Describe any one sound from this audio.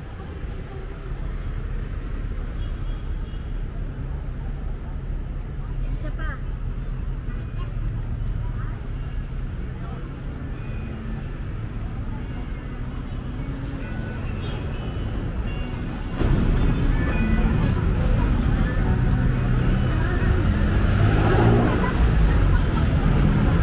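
Men and women chatter nearby in a busy street.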